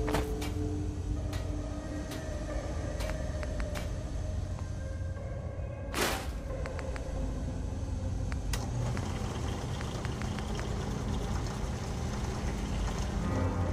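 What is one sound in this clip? Short game menu clicks tick now and then.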